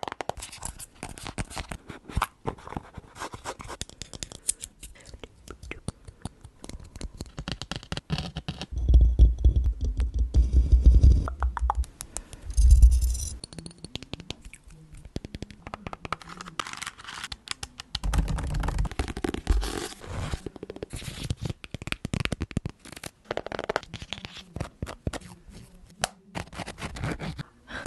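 Fingernails tap and scratch on objects close to a microphone.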